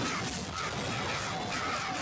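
Magic blasts burst and crackle loudly.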